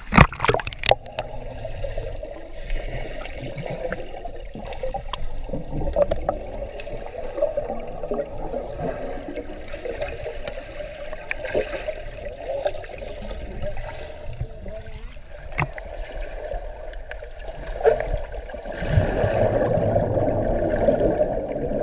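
Water rumbles and gurgles, heard from underwater.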